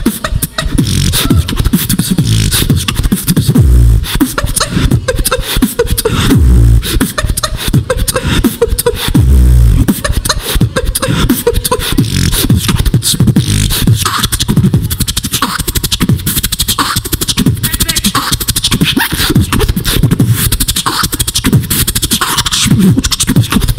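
A young man beatboxes loudly into a microphone with fast, punchy beats and deep booming bass.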